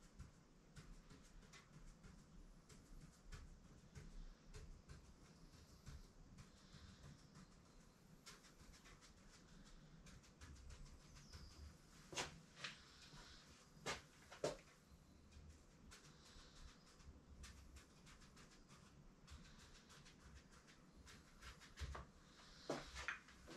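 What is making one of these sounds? A pen taps and scratches against a hard board in quick, short strokes.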